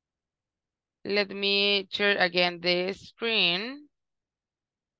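A young woman speaks with animation through an online call.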